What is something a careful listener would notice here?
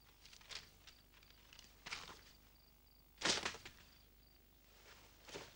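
Bedding rustles and thumps.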